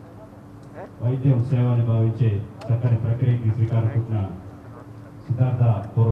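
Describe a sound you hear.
A man speaks loudly into microphones.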